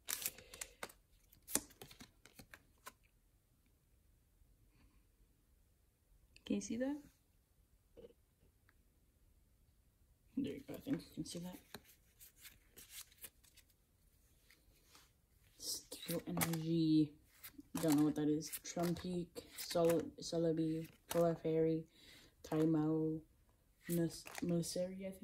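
Trading cards rustle and slide against each other in hands.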